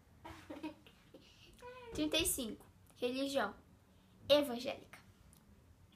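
A girl speaks with animation close to a microphone.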